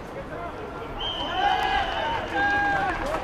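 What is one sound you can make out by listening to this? A referee's whistle blows a long shrill blast.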